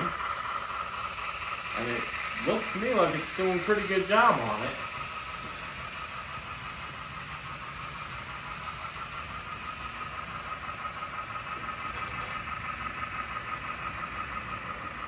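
A model train hums and clicks steadily along its track.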